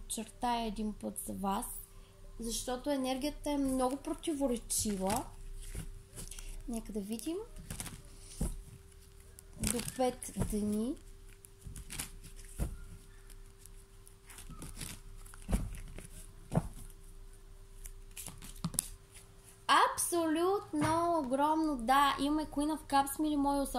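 Playing cards rustle and slide as a hand handles them.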